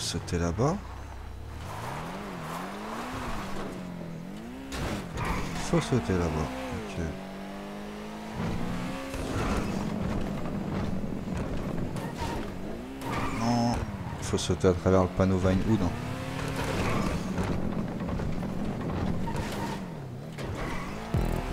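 Car tyres thump and clatter over bumps.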